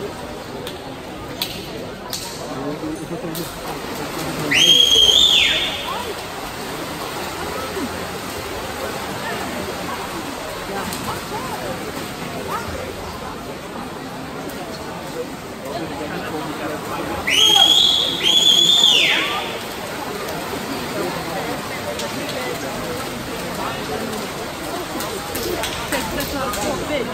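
Swimmers splash and churn through water in a large echoing pool hall.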